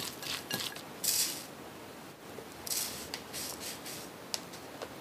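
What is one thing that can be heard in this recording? A spoon scrapes through breadcrumbs in a metal tray.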